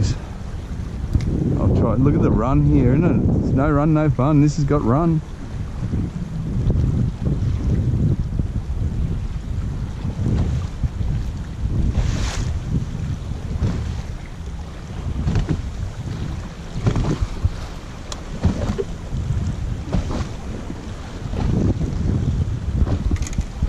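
Choppy water slaps against a small boat's hull.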